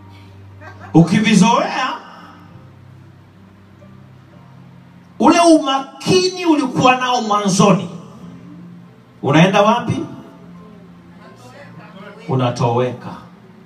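A man preaches with animation through a microphone, in short bursts with pauses.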